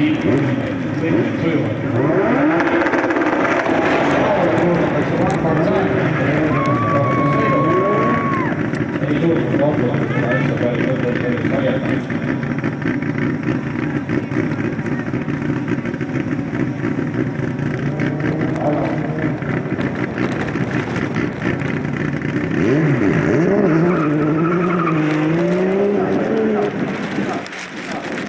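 Car engines roar and rev in the distance outdoors.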